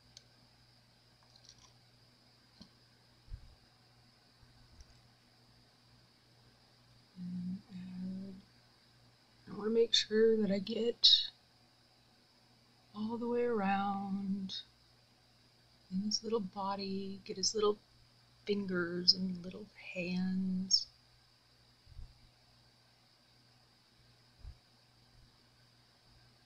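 A thin tool taps and scrapes lightly against a plastic cup.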